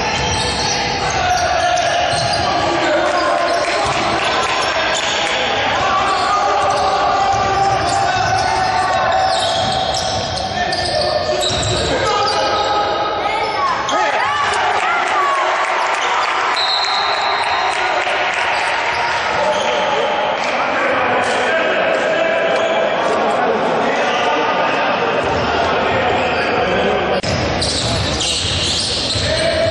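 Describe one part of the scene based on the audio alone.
A crowd chants and cheers loudly in a large echoing hall.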